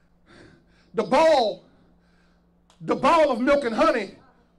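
A man preaches loudly and with fervour into a microphone, in bursts.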